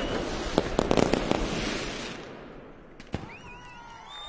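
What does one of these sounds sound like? Firecrackers explode in rapid, loud bangs outdoors.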